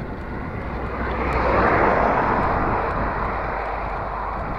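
A car passes by and fades.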